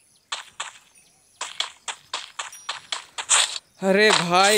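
Quick footsteps patter on grass in a video game.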